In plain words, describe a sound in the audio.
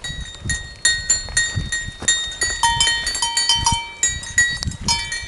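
Goat hooves crunch on gravel.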